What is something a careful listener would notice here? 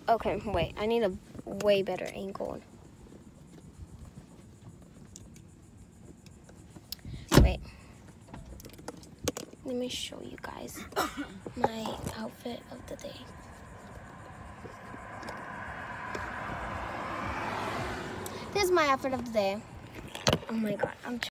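A young girl talks playfully close to the microphone.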